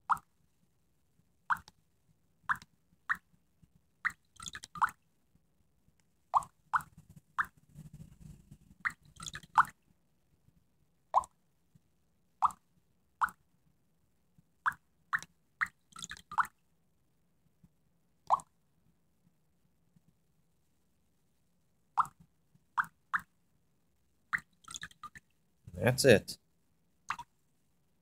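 Short electronic chimes ring out again and again.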